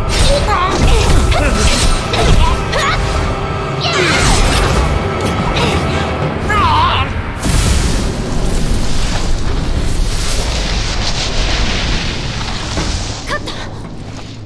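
Blades clash and ring out in a fast fight.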